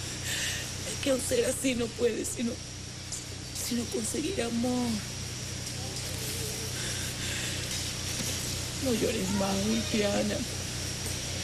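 A woman speaks tearfully close by, her voice breaking with sobs.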